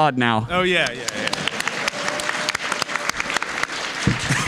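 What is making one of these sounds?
Hands clap in lively applause.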